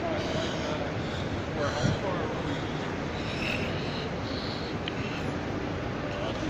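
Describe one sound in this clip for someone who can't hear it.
Voices murmur in a large echoing hall.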